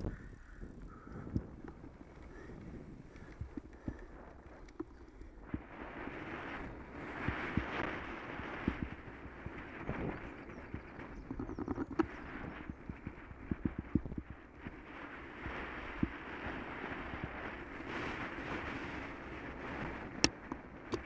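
Bicycle tyres crunch steadily over a gravel path.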